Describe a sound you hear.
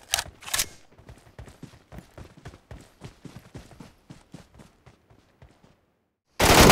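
Footsteps thud quickly through grass.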